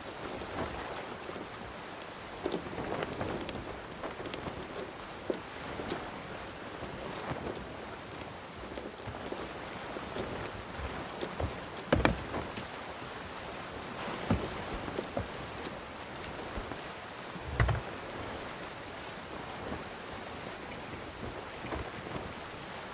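A wooden ship creaks and knocks as it rocks.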